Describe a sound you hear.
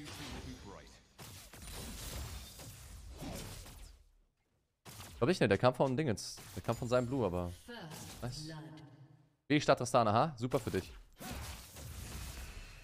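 Game effects whoosh and clash during a fight.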